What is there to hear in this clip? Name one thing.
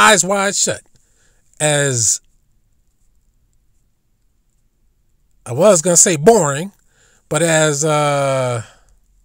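A man speaks with animation in short bursts, close to a microphone.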